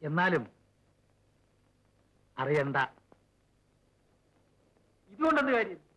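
A man speaks in short, relaxed phrases close by.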